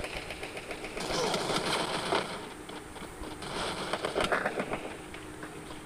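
Rapid gunshots crack in quick bursts.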